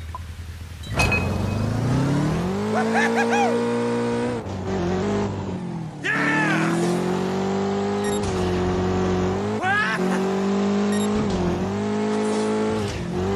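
A quad bike engine revs and whines, rising and falling in pitch.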